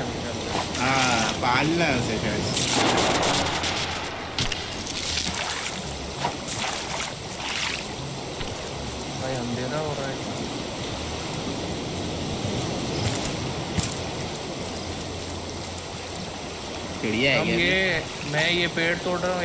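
Water gurgles and murmurs in a muffled, underwater way.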